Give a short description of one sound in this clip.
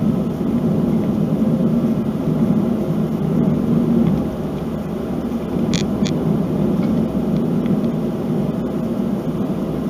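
Tyres roll steadily on a smooth road.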